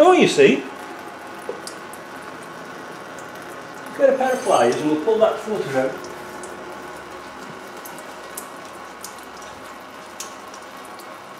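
Liquid streams steadily from under a vehicle and trickles down.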